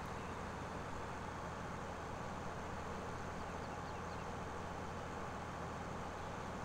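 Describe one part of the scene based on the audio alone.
A combine harvester engine rumbles steadily.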